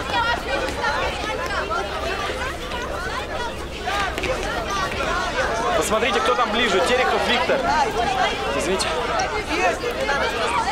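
A crowd of young men and women chatter excitedly all at once, close by.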